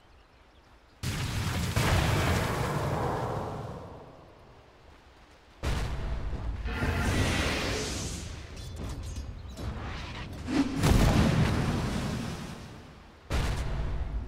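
Magic blasts burst with loud whooshing rushes.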